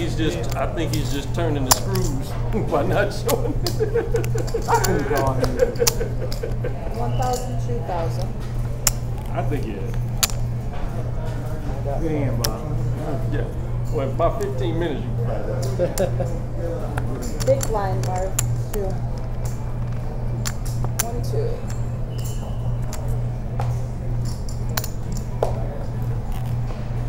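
Poker chips click and clatter on a table.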